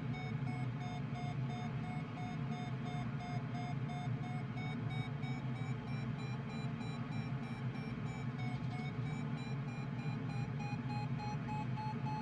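An instrument beeps in quick, even pulses, its pitch slowly rising.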